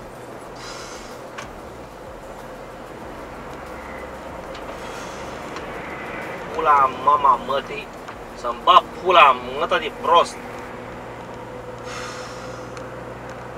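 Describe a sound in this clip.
Tyres roar steadily on a motorway.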